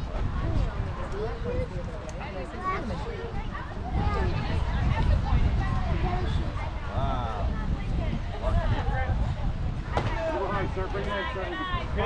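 Wind rumbles over the microphone outdoors.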